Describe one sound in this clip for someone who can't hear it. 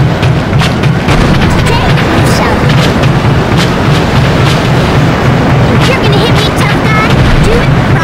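Explosions burst with loud bangs.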